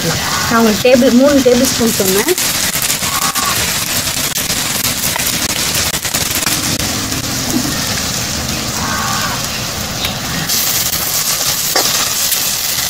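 Food sizzles steadily in hot oil.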